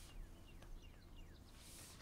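A stylus taps and scratches on a tablet.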